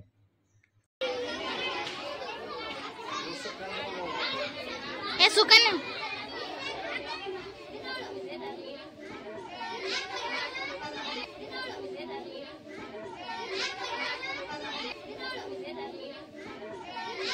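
Children chatter and talk in a noisy room.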